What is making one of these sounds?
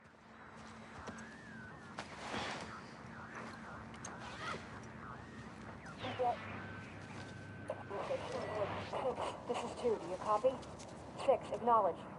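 Fabric rustles as a bag is searched by hand.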